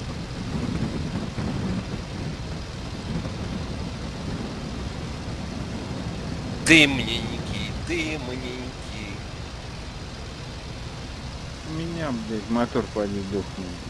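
A plane's engine drones steadily.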